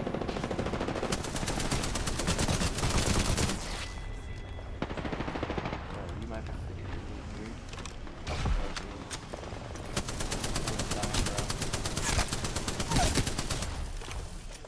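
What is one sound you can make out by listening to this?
A video game gun fires in rapid bursts.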